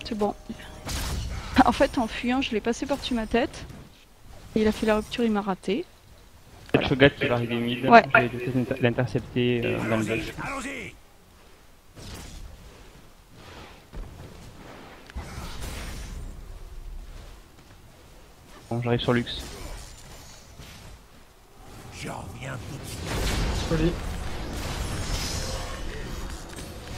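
Game spell effects crackle and burst in quick bursts.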